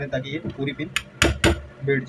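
A hammer taps on a pistol held in a vise.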